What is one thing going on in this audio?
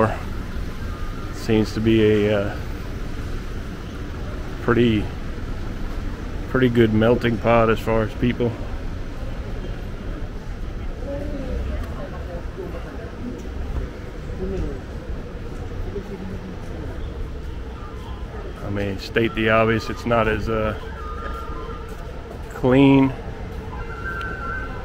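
A low street hum carries steadily outdoors.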